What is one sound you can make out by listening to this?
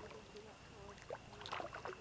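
A fish splashes in water.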